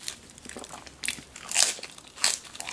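A woman crunches on lettuce close to a microphone.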